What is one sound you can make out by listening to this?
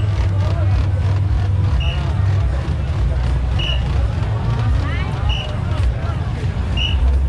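A large crowd of men and women chatters and calls out nearby, outdoors.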